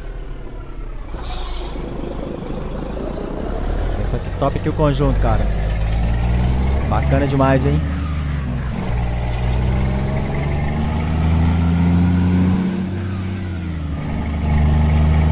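A heavy truck engine drones steadily, its pitch rising and falling as it changes gear.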